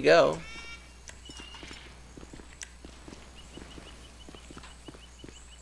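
Footsteps climb stone stairs at a quick pace.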